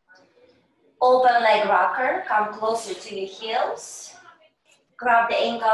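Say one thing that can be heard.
A middle-aged woman speaks over a microphone, giving instructions.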